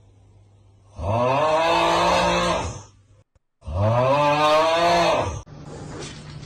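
A small child squeals loudly in long high cries.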